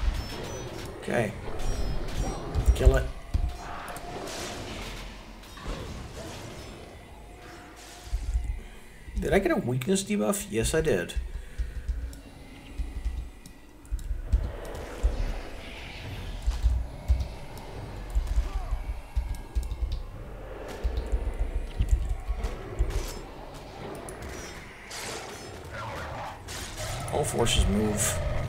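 Magic spells burst and crackle in a game fight.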